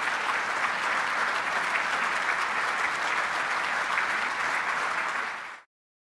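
A large crowd applauds loudly in a big echoing hall.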